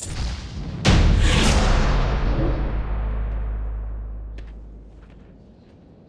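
A heavy magical blast booms and slowly rumbles away.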